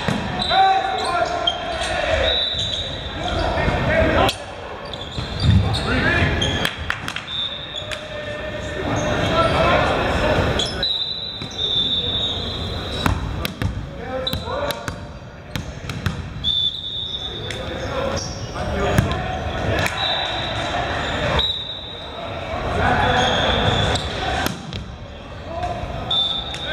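Young men call out and shout to each other in a large echoing hall.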